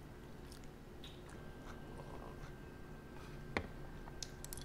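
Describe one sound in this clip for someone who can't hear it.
A fork scrapes and clinks on a plate.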